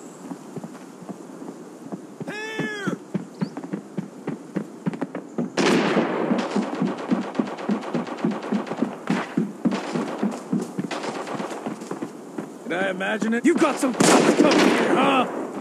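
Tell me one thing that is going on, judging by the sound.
Quick footsteps thud on wooden boards and dirt.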